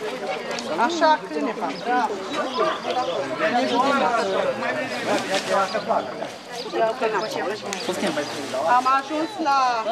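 A young girl talks in a high voice close by.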